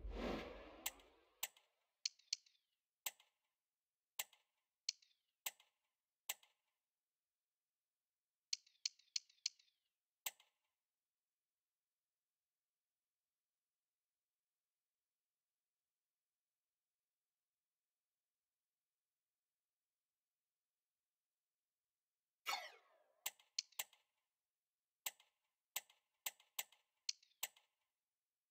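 Short menu clicks tick as a selection moves from item to item.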